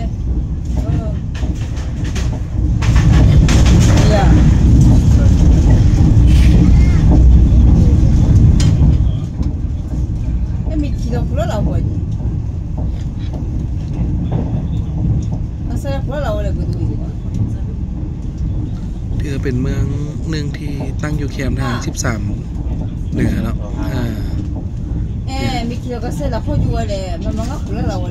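A train rumbles steadily along the tracks, louder for a while near the start.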